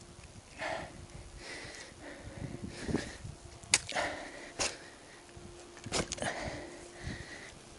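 Footsteps crunch on dry grass and loose soil.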